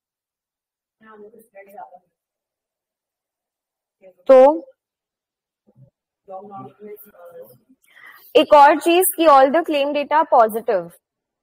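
A young woman speaks over an online call, explaining calmly.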